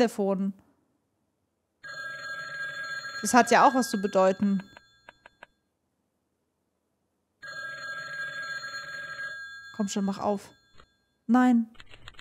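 A young woman speaks briefly and close into a microphone.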